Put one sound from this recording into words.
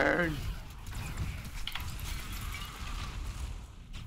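Magic spells whoosh and burst.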